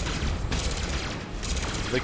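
An energy blast crackles and booms.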